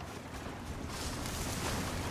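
Horses' hooves clop as a wagon rolls along.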